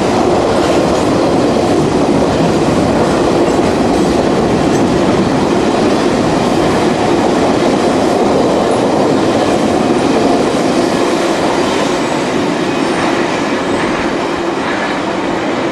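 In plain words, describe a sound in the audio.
A long freight train rumbles and clatters steadily along the tracks.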